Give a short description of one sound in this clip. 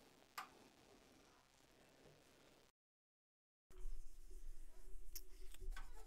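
Small objects clink in a woman's hands.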